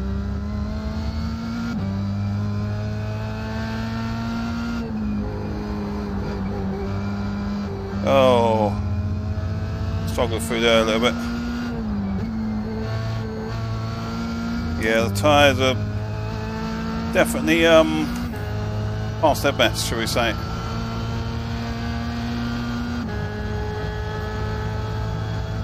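A racing car engine drones steadily, rising and dropping in pitch through gear changes.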